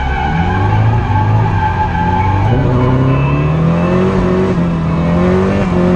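A race car engine roars loudly from inside the cabin, its pitch rising as it accelerates.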